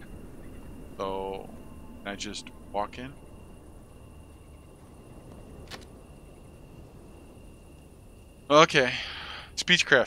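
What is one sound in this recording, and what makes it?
A young man speaks in short bursts into a close microphone.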